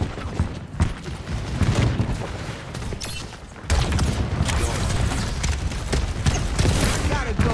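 Energy weapons fire in a video game, with bursts of sharp zapping and whooshing blasts.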